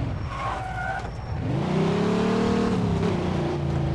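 Tyres screech on the road as a car skids through a turn.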